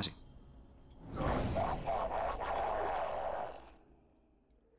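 A deep, rumbling whoosh swells and then fades away.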